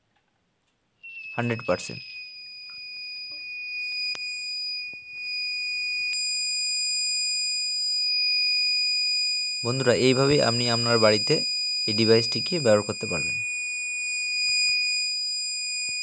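An electronic alarm sounds a steady high beep.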